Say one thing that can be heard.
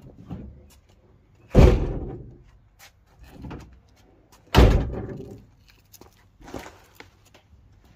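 Footsteps scuff on paving stones close by.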